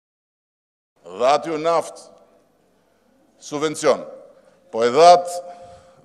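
A man speaks in short bursts into a microphone, heard over loudspeakers in a large echoing hall.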